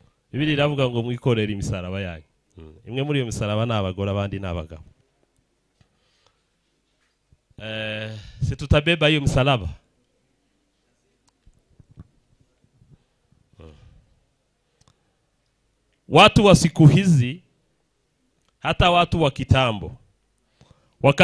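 A man speaks with animation into a microphone, with pauses between phrases.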